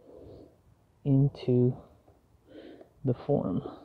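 Soft rustling of soil and a paper pot as they are handled close by.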